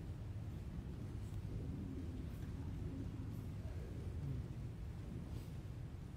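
Footsteps echo softly across a large hall.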